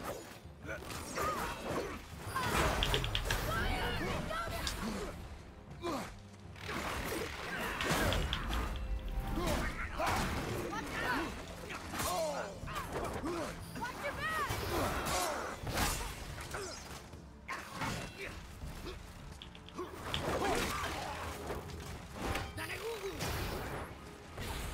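A heavy axe whooshes through the air.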